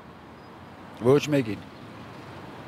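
An elderly man speaks calmly into a microphone close by.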